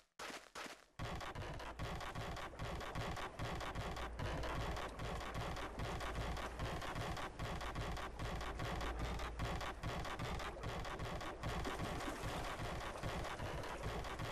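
Footsteps thud steadily on wooden planks.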